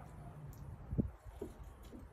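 A glass is set down on a wooden counter with a knock.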